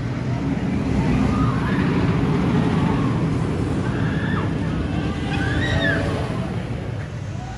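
Riders on a roller coaster scream.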